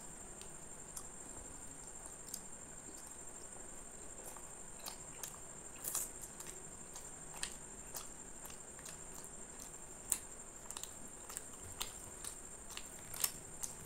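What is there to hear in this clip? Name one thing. A man chews and smacks his lips loudly, close up.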